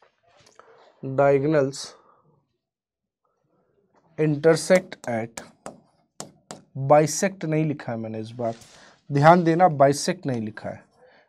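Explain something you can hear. A man speaks calmly into a close microphone, explaining in short bursts with pauses.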